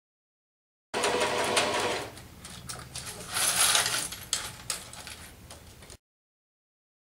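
A sewing machine whirs as it stitches.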